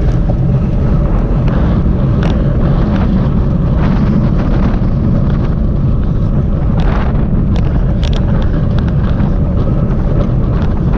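A bicycle's tyres hum on asphalt.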